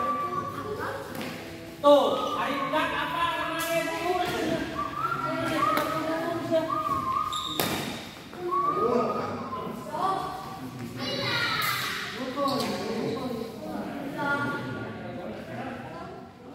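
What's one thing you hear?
A shuttlecock is struck with a racket, with sharp pops in a large echoing hall.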